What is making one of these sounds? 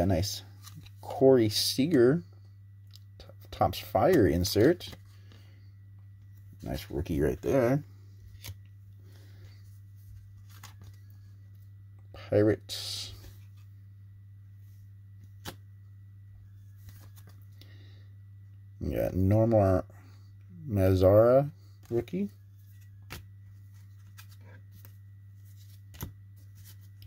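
Hands shuffle through a stack of baseball trading cards.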